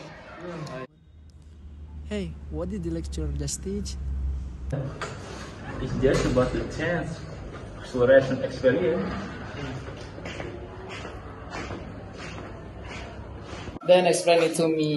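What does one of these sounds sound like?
Young men talk and laugh nearby.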